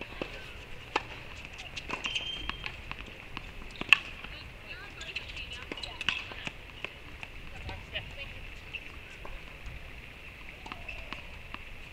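A tennis ball is struck with a racket outdoors, with sharp pops.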